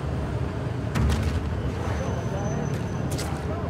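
Footsteps tread on pavement.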